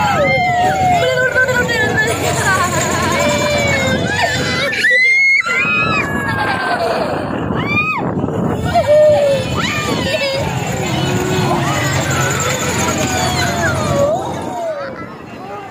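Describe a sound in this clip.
Children scream and shout with excitement close by.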